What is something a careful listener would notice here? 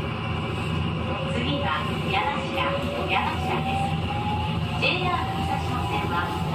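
Train wheels squeal on a curve in the track.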